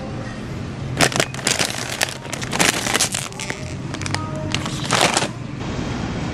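A crisp plastic snack bag crinkles as it is handled.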